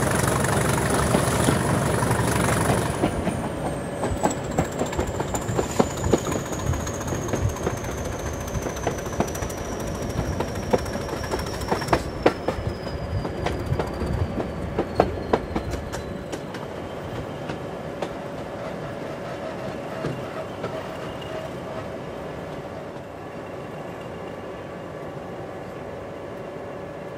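A train rumbles along the track, its wheels clicking over rail joints.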